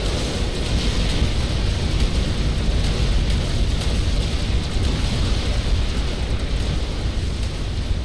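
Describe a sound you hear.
Explosions rumble continuously in a video game battle.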